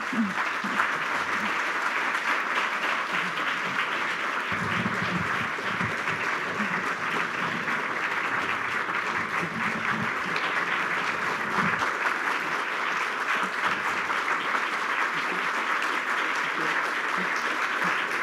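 A large crowd applauds and claps steadily in a big hall.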